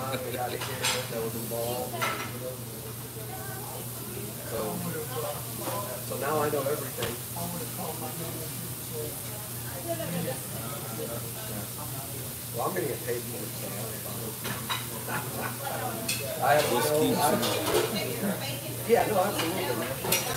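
A middle-aged man laughs, close to a microphone.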